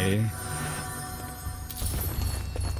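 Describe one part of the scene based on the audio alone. A chime rings out as a chest opens.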